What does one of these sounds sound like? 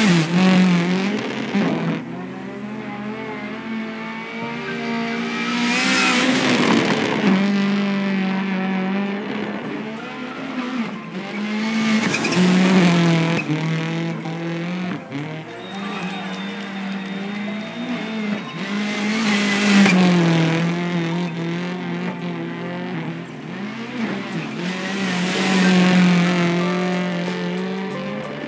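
Gravel sprays and crunches under a car's tyres.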